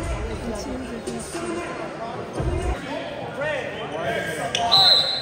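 A crowd of young people and men talk and chatter loudly in a large echoing hall.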